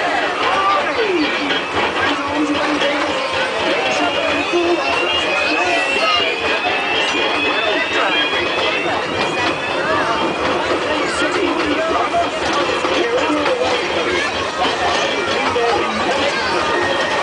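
A small open train rumbles and rattles along its track.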